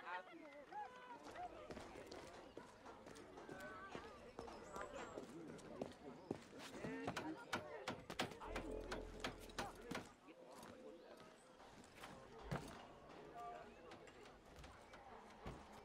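Footsteps run quickly over hard ground.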